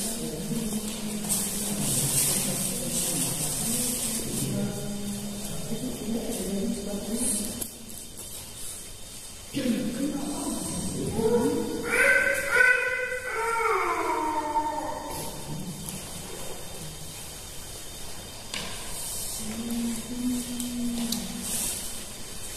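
A young man recites prayers in a low, melodic chanting voice close by.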